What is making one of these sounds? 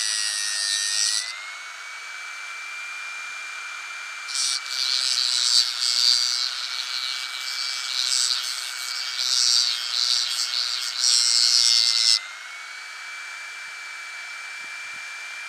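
A small rotary tool whines steadily at high speed.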